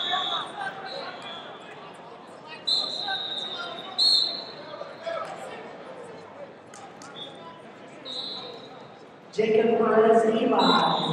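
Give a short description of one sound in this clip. Many people talk and murmur in a large echoing hall.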